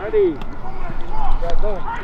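Footsteps thud quickly on artificial turf outdoors.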